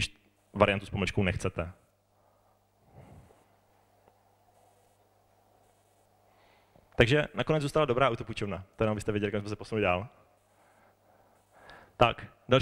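A young man speaks into a microphone over loudspeakers, in bursts with pauses.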